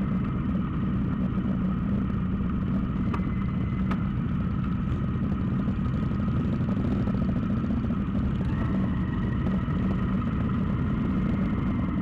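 Wind rushes past in a low roar.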